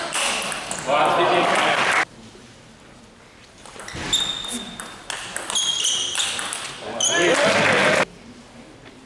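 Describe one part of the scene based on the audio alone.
An audience claps in bursts of applause.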